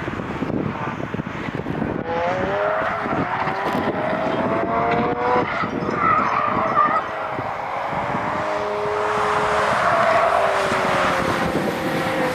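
Car engines roar and rev as cars race past on a track outdoors.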